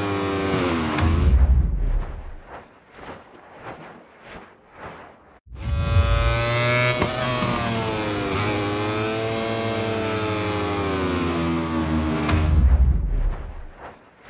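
A motorcycle crashes with a heavy thud and skids.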